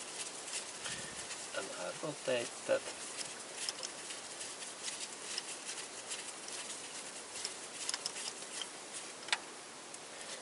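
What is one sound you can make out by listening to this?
A ratchet wrench clicks as it is turned back and forth.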